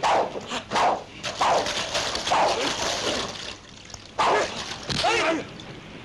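Waves splash and wash over the sand.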